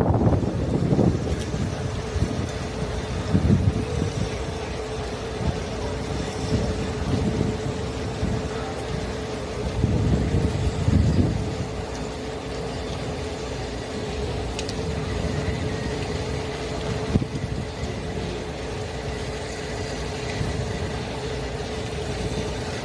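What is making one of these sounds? A train hums steadily as it rolls slowly.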